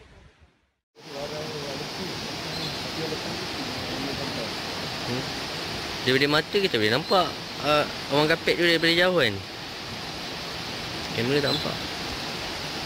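A shallow stream flows and gurgles over rocks.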